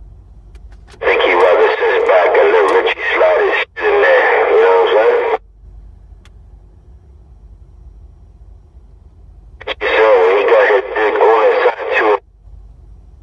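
Loud, distorted sound bursts from a radio loudspeaker in two stretches.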